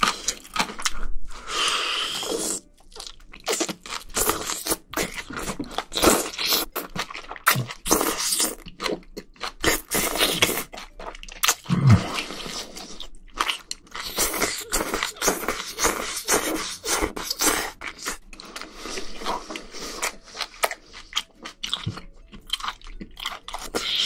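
A man slurps noodles loudly, close to the microphone.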